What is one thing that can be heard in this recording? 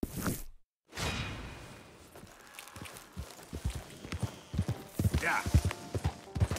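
Horse hooves thud and clop on grassy ground.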